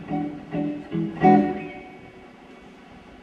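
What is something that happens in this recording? A band plays a few loud chords in a large echoing hall, and the last chord rings out and fades.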